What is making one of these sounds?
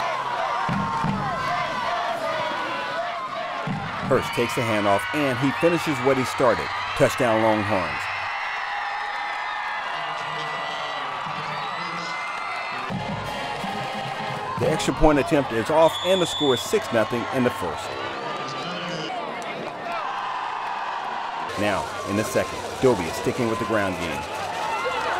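A crowd cheers from the stands outdoors.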